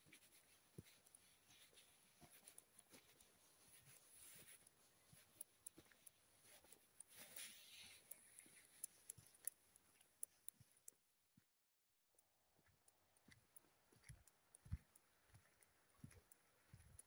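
Boots thud in steady footsteps on a hard floor.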